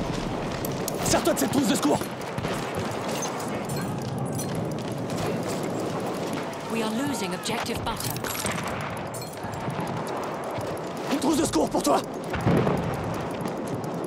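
Rifle shots crack and echo through a hall.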